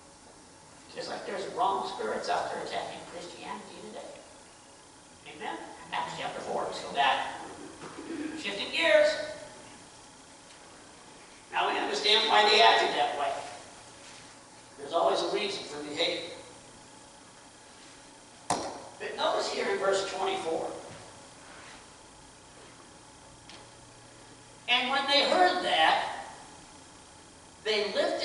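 A man speaks calmly through a microphone in a room with some echo, pausing between phrases.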